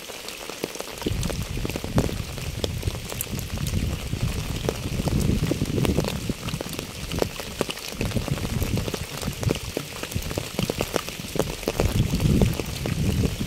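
Footsteps crunch and squelch on wet leaves.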